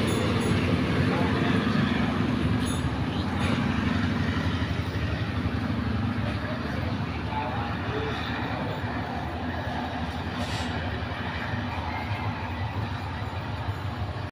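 A diesel train engine rumbles as a train pulls away and fades into the distance.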